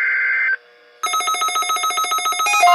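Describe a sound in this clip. A rapid electronic ringing starts.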